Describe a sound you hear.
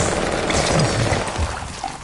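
Electricity crackles and buzzes up close.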